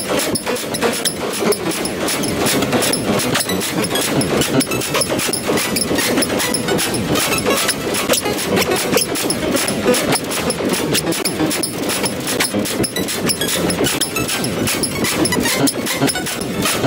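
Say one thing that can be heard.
Dense, fast piano music plays with a flood of rapid notes.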